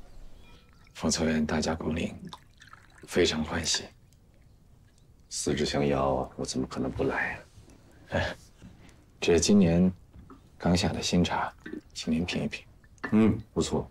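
A man speaks calmly and slowly nearby.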